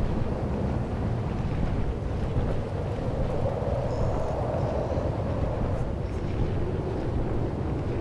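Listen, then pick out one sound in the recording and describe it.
A hover bike's engine hums and roars steadily.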